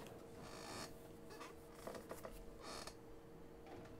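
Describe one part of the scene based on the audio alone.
A drink can clunks out of a vending machine.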